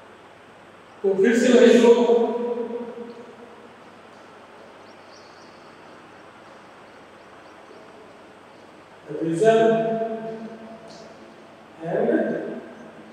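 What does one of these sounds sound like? A man speaks calmly through a microphone in a room with slight echo.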